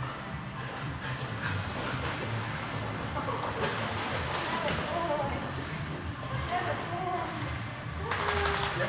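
Water splashes and laps, echoing.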